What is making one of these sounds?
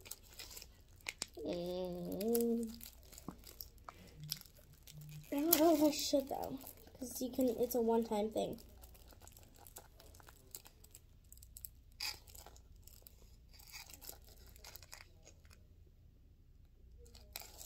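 Plastic wrappers crinkle and rustle in a young girl's hands.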